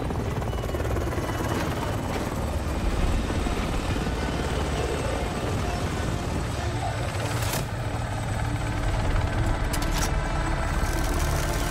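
A helicopter's rotor thumps and roars overhead.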